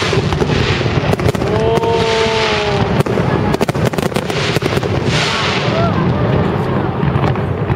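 Fireworks crackle and sizzle as sparks fall.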